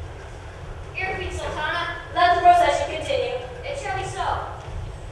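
A young woman speaks with animation on a stage, heard from the audience.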